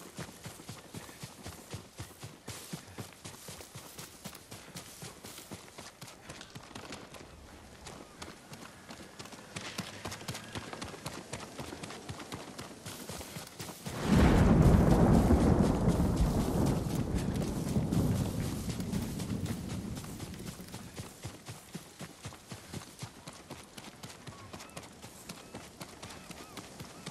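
Footsteps run quickly through grass and over rock.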